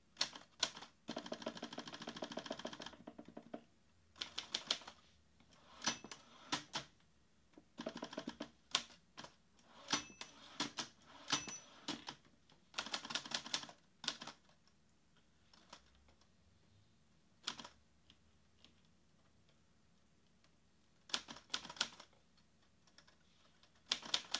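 Fingers type on a laptop keyboard, tapping in quick bursts.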